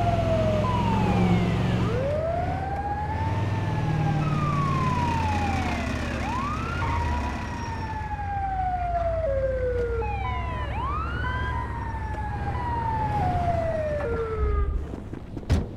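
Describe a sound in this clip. A vehicle engine rumbles as it drives along a road.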